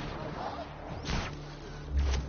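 A distant explosion booms once.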